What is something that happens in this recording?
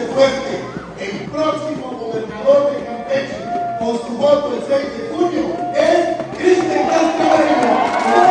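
A man speaks loudly and with animation through a microphone and loudspeaker.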